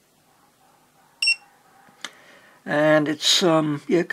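A small plastic button clicks once.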